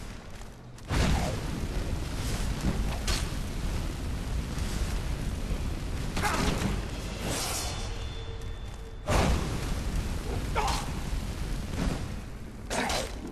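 Flames roar and crackle in loud, steady bursts.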